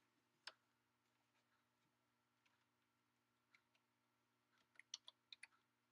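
Keyboard keys click in short bursts.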